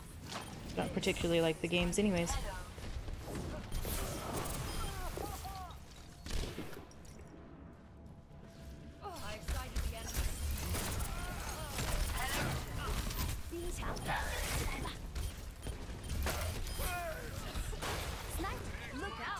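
Gunfire and explosions go off in bursts.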